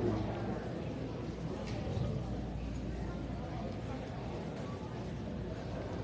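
A man speaks through a microphone and loudspeakers in a large room.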